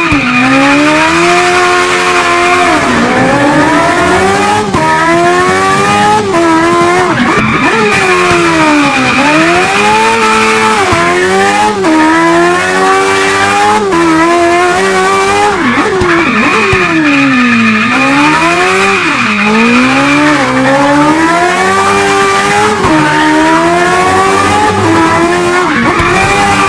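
A race car engine revs hard, rising and falling as the gears shift.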